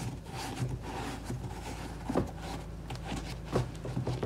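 Shoelaces rustle as they are pulled.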